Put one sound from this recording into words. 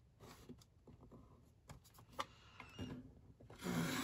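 A paper trimmer blade slides along its rail.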